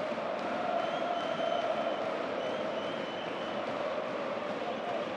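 A large stadium crowd roars and chants loudly.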